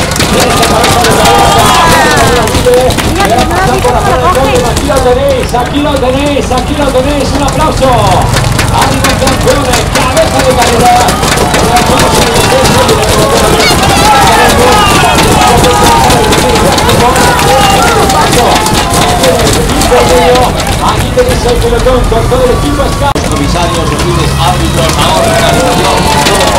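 A large crowd cheers, shouts and whistles loudly outdoors.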